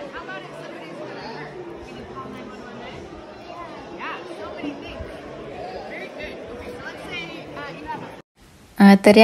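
Many people chatter in the background.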